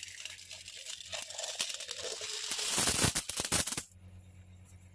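Coins pour out of a cup and clatter into a pile.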